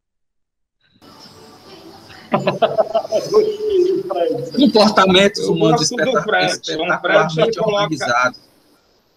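A second man speaks with animation over an online call.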